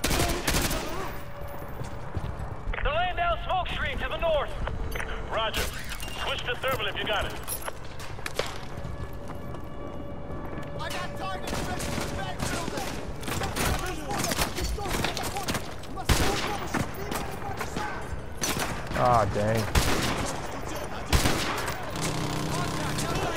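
Gunfire crackles in sharp bursts around a battle.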